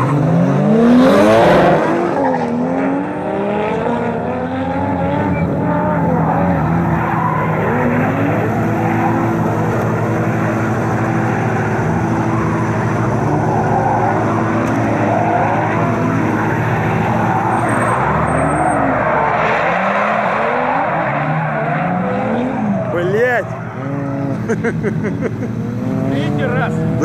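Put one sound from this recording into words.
Tyres screech loudly as cars drift.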